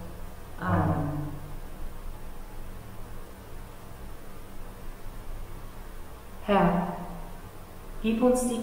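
A woman sings short phrases through a microphone in an echoing hall.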